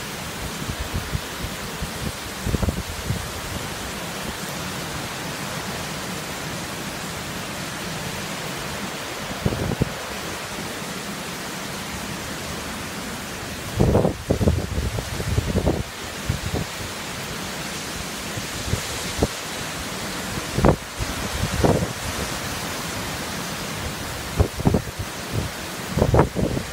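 Wind gusts rumble in bursts.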